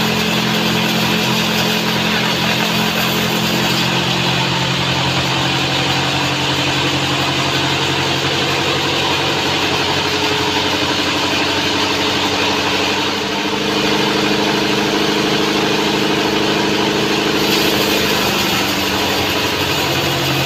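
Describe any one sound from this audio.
A band saw whines steadily as it cuts through a large log.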